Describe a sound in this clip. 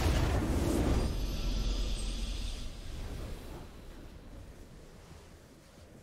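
A triumphant victory sound swells and then fades.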